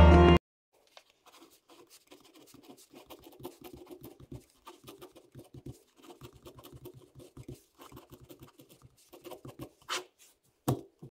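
A pen scratches softly across paper, writing in short strokes.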